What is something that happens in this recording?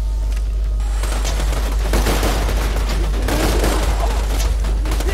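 A rifle fires a sharp gunshot.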